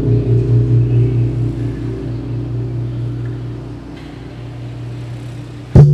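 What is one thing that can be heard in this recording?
A congregation of women and men chants a prayer together in unison, echoing in a large hall.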